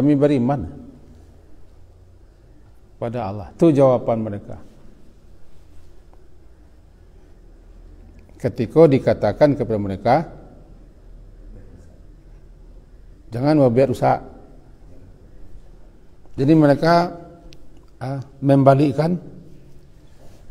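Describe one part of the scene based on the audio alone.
An older man speaks calmly into a microphone, in short phrases with pauses.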